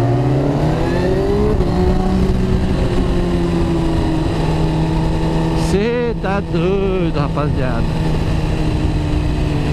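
A motorcycle engine hums steadily, its pitch rising as it speeds up and then holding.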